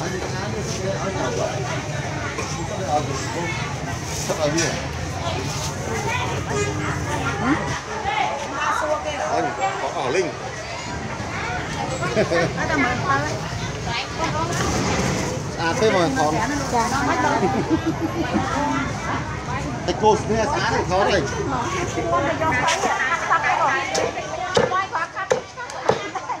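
A crowd of men and women chatters all around.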